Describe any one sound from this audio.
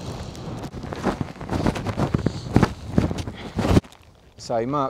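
Boots crunch on rocky ground with steady footsteps.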